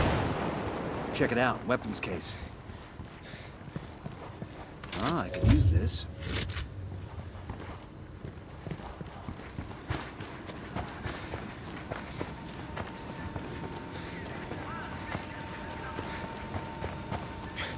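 Footsteps crunch on gravel and dirt.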